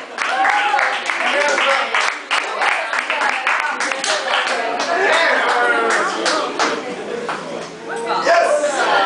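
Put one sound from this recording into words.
A group of people claps along in quick rhythm.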